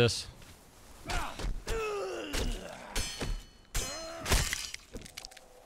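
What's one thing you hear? A blade slashes and strikes a body in a fight.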